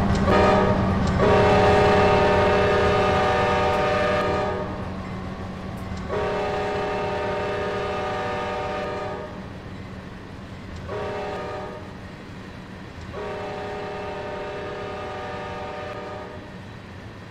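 A diesel locomotive horn blasts loudly several times.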